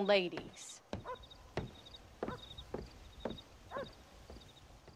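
Footsteps knock on wooden boards.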